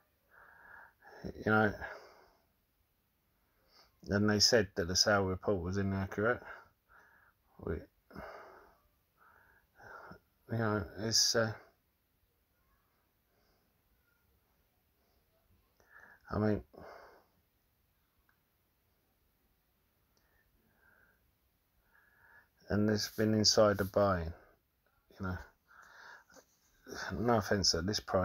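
A man speaks calmly into a phone, in short bursts with pauses.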